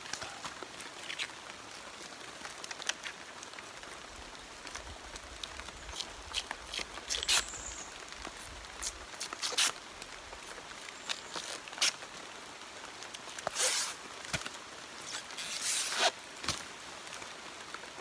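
A knife scrapes and slices through a fibrous plant stem.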